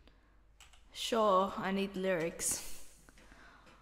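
A young woman speaks briefly in a sing-song way, close to a microphone.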